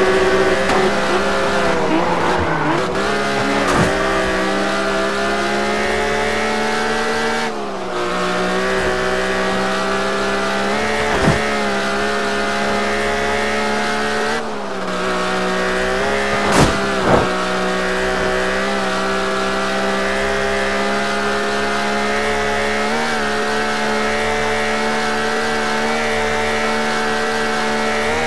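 A car engine drones steadily at high speed, its pitch dipping briefly and climbing again as it shifts gear.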